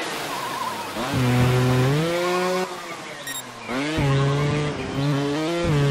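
A motorbike engine revs up and down, whining and roaring.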